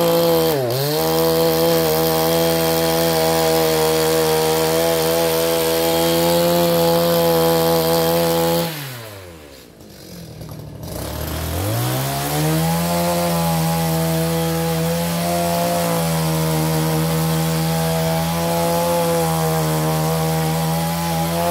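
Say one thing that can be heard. A small petrol motor drones loudly and steadily, briefly winding down and then speeding back up.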